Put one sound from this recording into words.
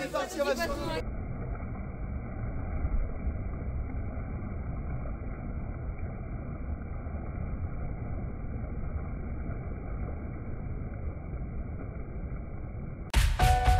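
Whitewater rushes and splashes around a kayak.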